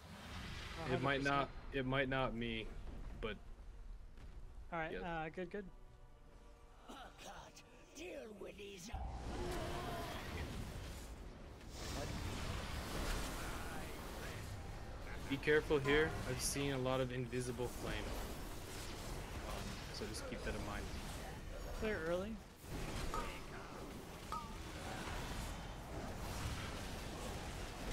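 Spells and weapon blows crackle and clash in a game battle.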